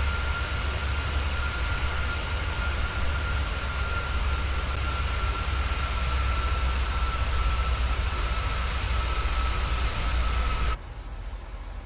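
Jet engines roar loudly and steadily outside an airliner in flight.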